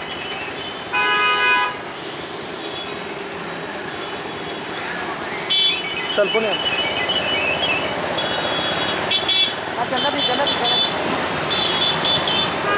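Motorcycle horns honk now and then.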